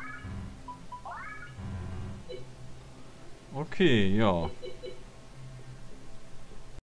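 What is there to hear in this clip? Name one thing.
Gentle electronic video game music plays.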